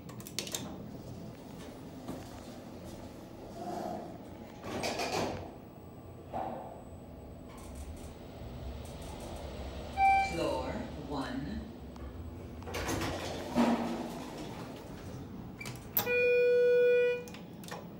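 An elevator button clicks as it is pressed.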